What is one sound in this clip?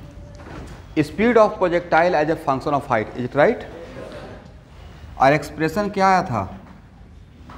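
A man speaks clearly and with animation, explaining to a room.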